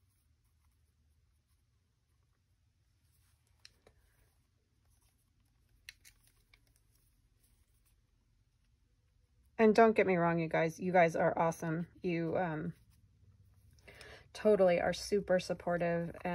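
A brush dabs and scratches lightly on textured paper.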